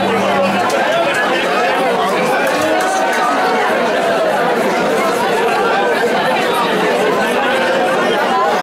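A live rock band plays loudly, heard from within an echoing hall.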